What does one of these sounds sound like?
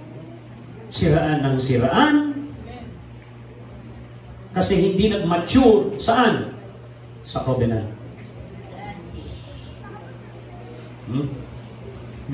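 A middle-aged man preaches in short bursts with pauses.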